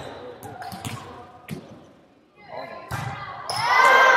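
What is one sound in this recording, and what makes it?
A volleyball is struck with a sharp smack.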